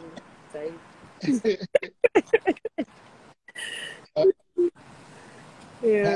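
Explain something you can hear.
A woman laughs over an online call.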